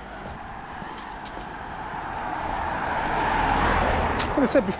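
A car passes by on the road.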